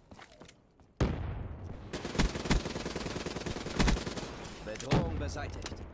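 Gunshots fire in sharp, loud bangs.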